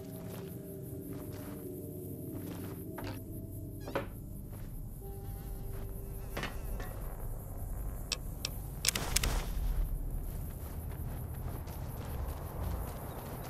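Footsteps crunch on gravel and dirt.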